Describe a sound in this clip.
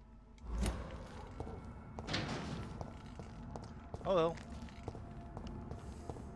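Footsteps tread slowly on hard stone.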